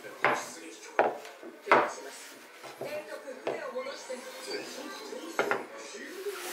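Wooden pieces knock and clack together on a table.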